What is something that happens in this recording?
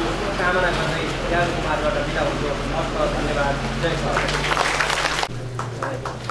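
A man speaks loudly into a microphone over a loudspeaker.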